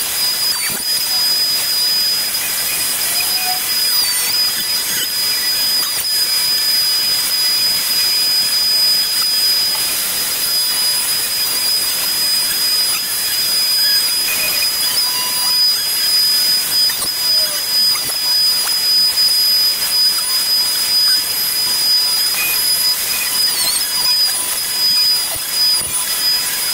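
A router whines steadily at high speed as it cuts into wood.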